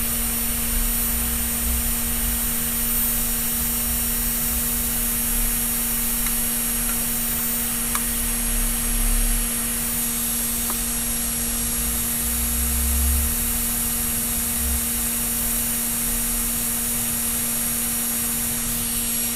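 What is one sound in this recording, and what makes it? A knob clicks softly as it is turned.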